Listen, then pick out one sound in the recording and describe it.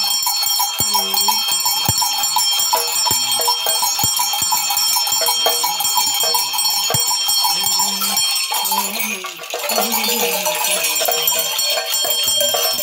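An elderly man chants in a low voice.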